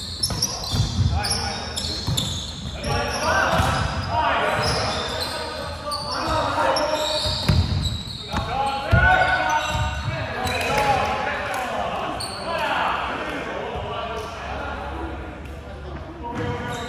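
Young men shout and call out during play.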